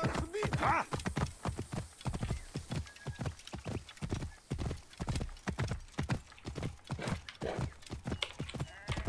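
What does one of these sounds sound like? A horse's hooves pound steadily at a gallop.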